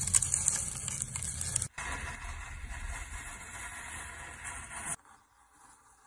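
A knife slices through a strawberry.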